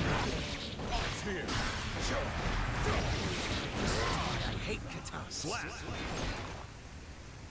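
Sword slashes whoosh and clang in quick bursts.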